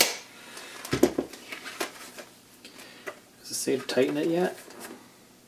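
Paper rustles as a booklet is unfolded and handled.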